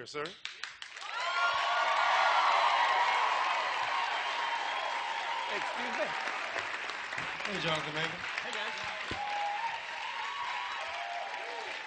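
A large studio audience cheers and claps loudly.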